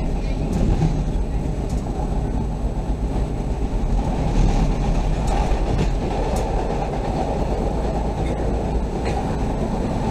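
Train wheels click over rail joints and points.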